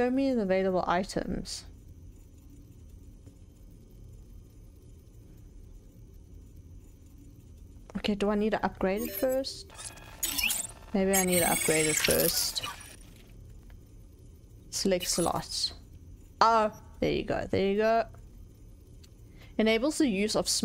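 A young woman talks with animation into a close microphone, in short bursts with pauses.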